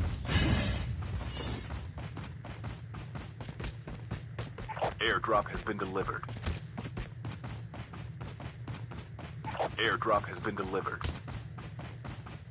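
Quick footsteps run over grassy ground.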